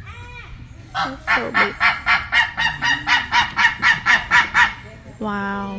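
A large bird calls out in a rapid series of loud squawks.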